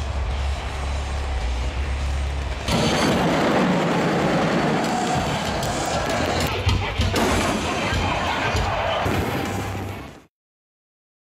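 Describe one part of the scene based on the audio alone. A large crowd cheers and roars in a huge open stadium.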